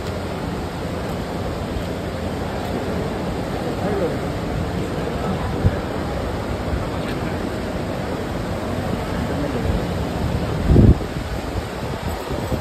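A crowd of people murmurs and chatters in a large, echoing hall.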